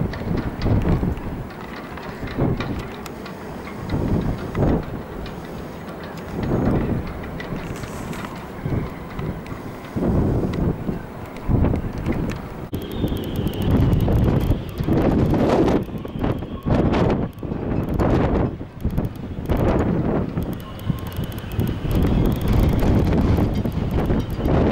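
Wind gusts roar outdoors in bursts.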